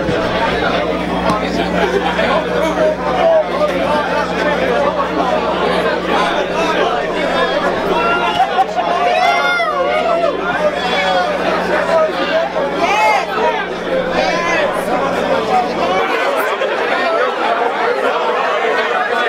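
A crowd chatters and cheers loudly.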